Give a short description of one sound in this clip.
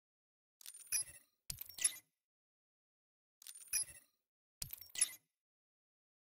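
Short electronic chimes and whooshes sound as menu options are selected.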